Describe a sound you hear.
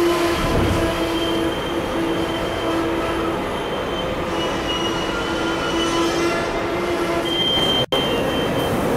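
A passenger train carriage hums and rumbles from inside as it runs along the track.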